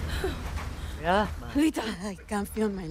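A young woman speaks weakly and in pain, close by.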